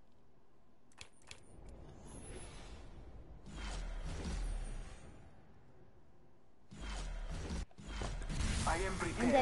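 Video game menu music and effects play.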